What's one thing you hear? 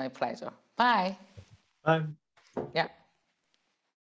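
A middle-aged woman speaks warmly into a microphone.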